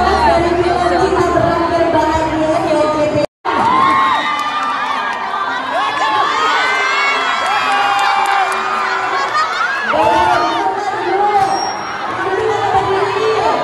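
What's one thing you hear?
A crowd sings along loudly in a large echoing hall.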